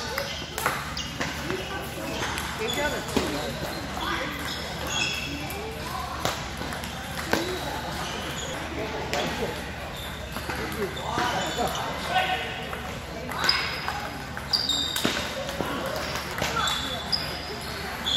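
People chatter in the background of a large hall.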